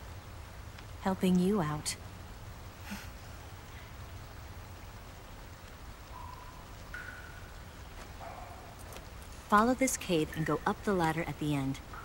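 A woman speaks softly and closely.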